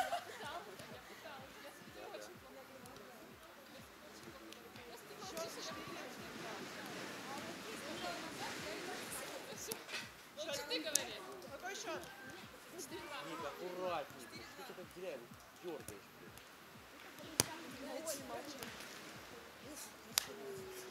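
Young women call out and talk outdoors at a distance.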